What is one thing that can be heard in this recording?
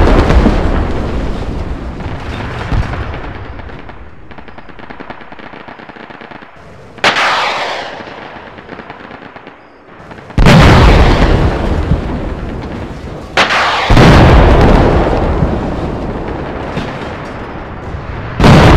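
Heavy explosions boom and rumble, echoing across open ground.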